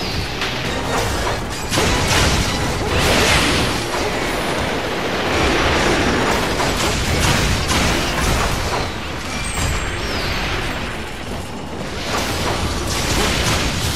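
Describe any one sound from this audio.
Metal blades clang and slash against hard hide.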